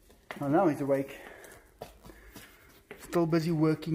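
A small dog's claws tap and click on a hard tiled floor.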